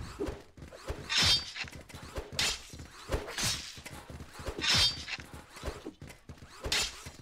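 Energy swords swoosh through the air in quick bursts.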